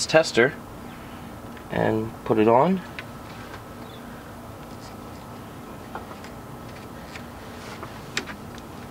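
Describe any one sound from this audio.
A hand tool clicks and taps against metal engine parts.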